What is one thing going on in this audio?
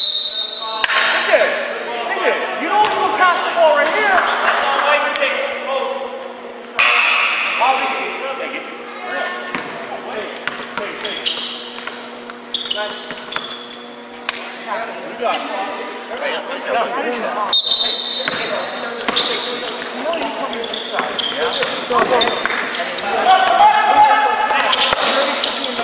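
Young men shout and call out to each other across a large echoing gym.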